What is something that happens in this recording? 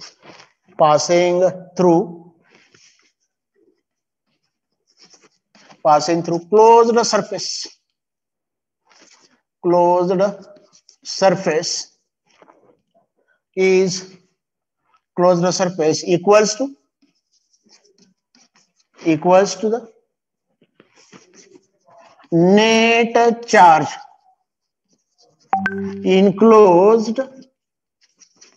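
A man speaks calmly in short phrases, as if reading out slowly.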